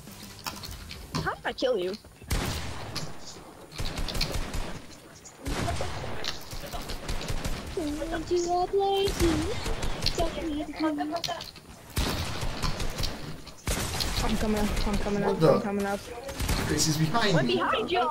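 Loud game effects of building and shooting clatter in quick bursts.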